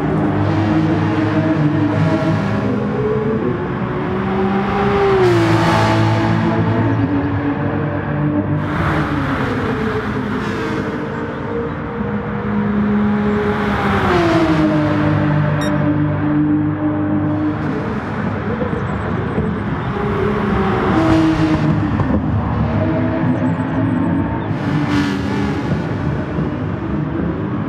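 A race car engine roars, rising and falling in pitch as it shifts gears.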